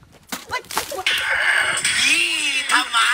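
A watermelon smashes and splatters on the ground.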